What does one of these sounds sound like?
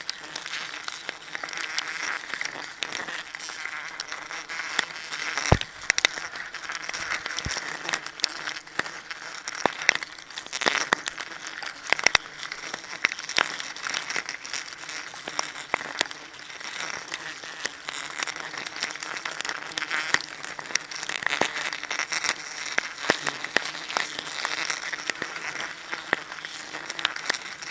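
Metal climbing spikes knock and scrape against tree bark, close by.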